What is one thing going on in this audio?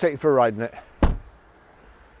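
A car door shuts with a heavy thud.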